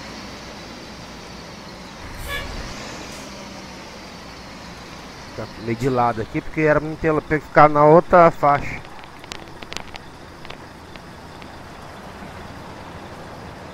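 A bus engine hums steadily as the bus drives slowly.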